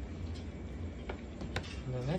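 A pencil taps on a hard surface.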